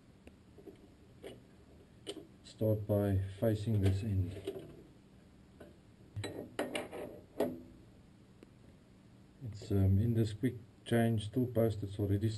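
Metal tools click and clink.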